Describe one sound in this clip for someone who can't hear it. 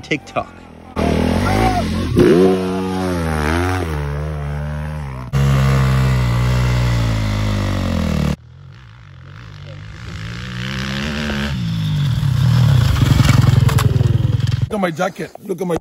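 A dirt bike engine roars and revs up and down.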